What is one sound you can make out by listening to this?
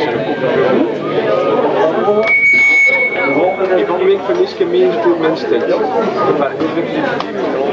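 A man sings through a microphone over the band.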